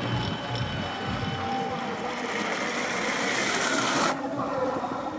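Skis hiss down an icy track, growing louder.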